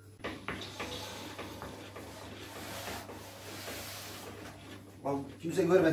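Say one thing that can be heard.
A rolling pin rolls and knocks against a wooden board.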